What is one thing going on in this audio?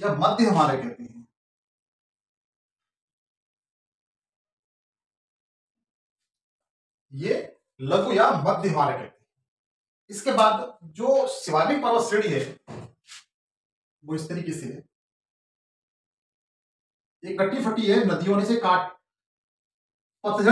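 A man speaks in bursts, explaining calmly and close by.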